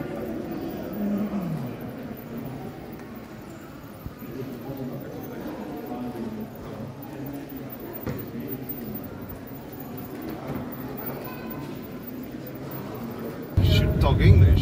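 Model trains rattle along their tracks.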